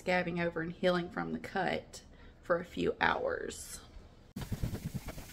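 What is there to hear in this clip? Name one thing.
A young woman speaks with animation close to the microphone.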